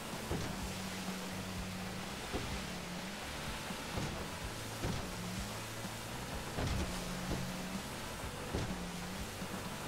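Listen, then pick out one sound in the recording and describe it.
Water sprays and rushes past a speeding boat.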